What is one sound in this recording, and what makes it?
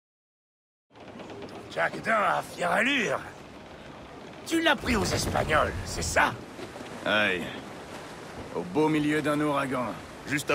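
Waves wash against the hull of a sailing ship.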